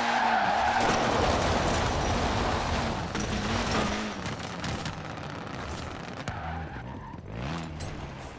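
Tyres scrape and skid on the road.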